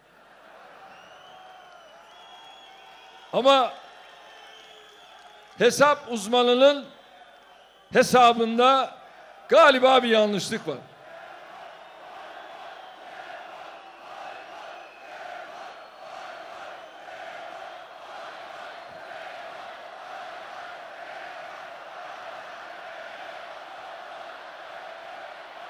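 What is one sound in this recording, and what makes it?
A large crowd cheers and chants outdoors.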